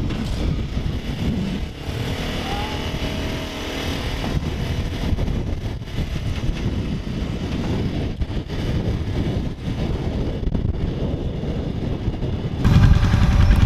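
An off-road vehicle engine rumbles as it drives over rough ground.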